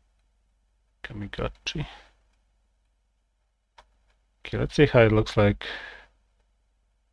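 A young man speaks briefly into a close microphone, with pauses.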